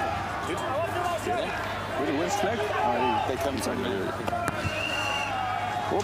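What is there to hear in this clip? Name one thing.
A crowd murmurs in stands outdoors.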